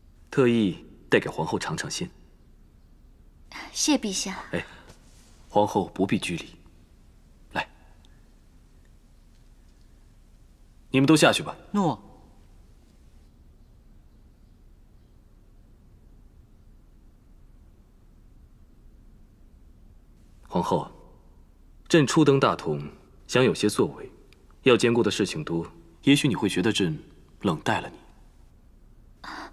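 A man speaks softly and warmly, close by.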